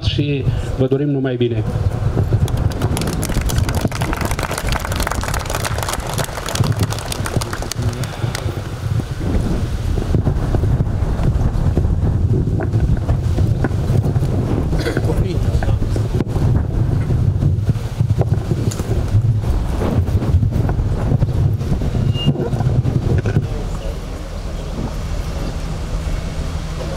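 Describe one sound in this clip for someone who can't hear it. A group of men murmur and talk nearby.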